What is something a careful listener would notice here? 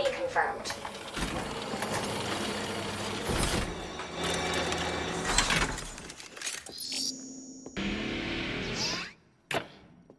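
Large clock gears grind and clank.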